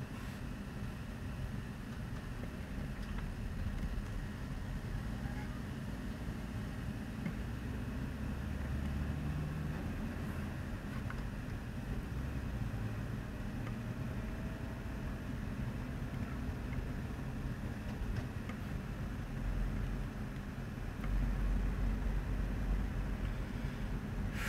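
Wind buffets outdoors.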